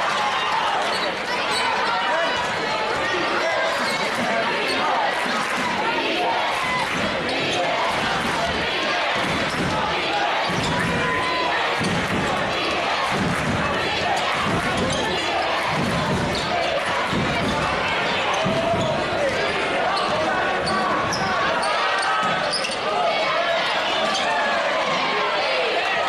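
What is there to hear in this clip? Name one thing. A large crowd cheers and shouts loudly in an echoing gym.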